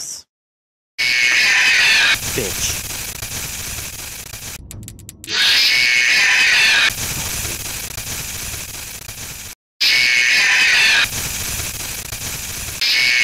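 Loud electronic static hisses in harsh bursts.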